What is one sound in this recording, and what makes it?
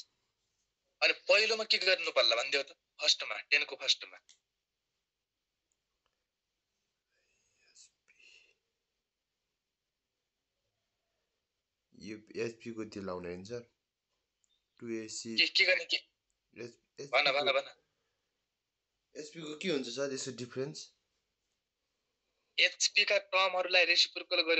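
A man explains calmly through a microphone, in bursts with pauses.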